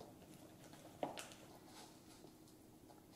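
Hands rustle and toss food in a plastic bowl.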